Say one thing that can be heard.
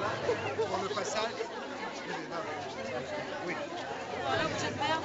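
A crowd of men and women talks over one another nearby.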